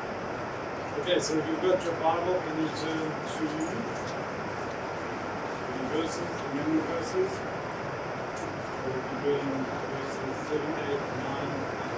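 An older man reads out calmly.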